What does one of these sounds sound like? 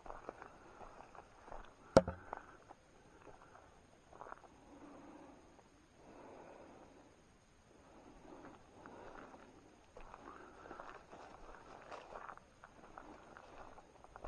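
Footsteps crunch softly on a forest path.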